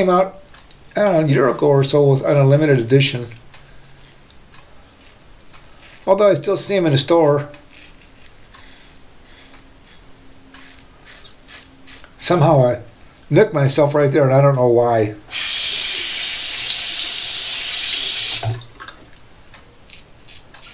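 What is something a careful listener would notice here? A razor scrapes across stubble.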